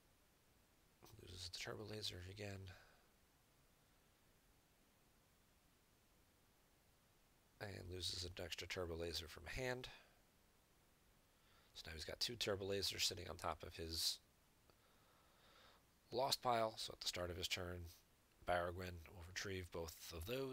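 A young man talks casually into a close microphone, in bursts with pauses.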